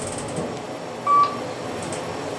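An elevator chime dings once.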